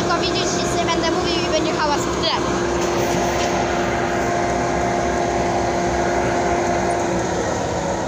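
A combine harvester engine drones steadily while working in a field.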